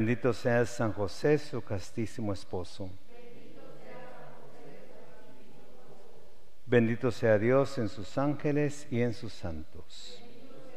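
A man chants a prayer in a singing voice through a microphone.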